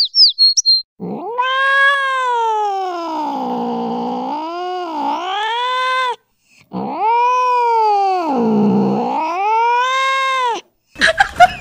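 A cat meows loudly in long, drawn-out wails.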